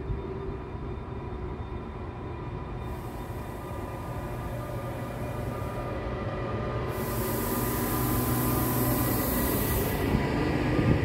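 An electric locomotive hums loudly as it pulls in close by.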